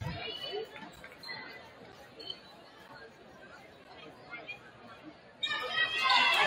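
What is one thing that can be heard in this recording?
A crowd murmurs and talks in the background.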